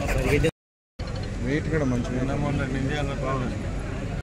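A crowd of people murmurs in the background.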